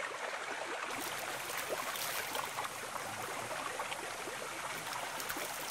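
Water splashes as a man scoops it with his hands.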